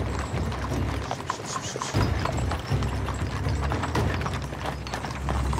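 Carriage wheels rattle over cobblestones.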